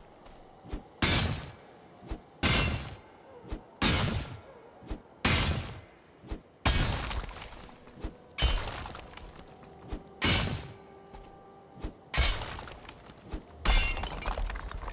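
A pickaxe strikes rock over and over with loud, crunching thuds.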